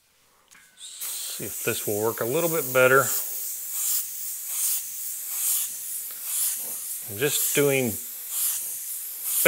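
An airbrush hisses steadily as it sprays paint.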